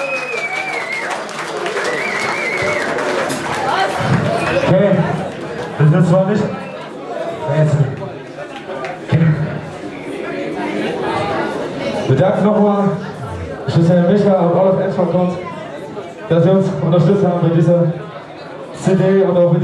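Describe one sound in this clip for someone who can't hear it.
A rock band plays loudly live in an echoing hall.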